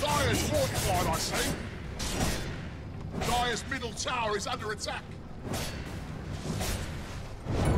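Game weapons clash and strike.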